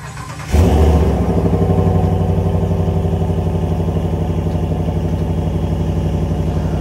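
A truck engine idles with a deep, throbbing exhaust rumble.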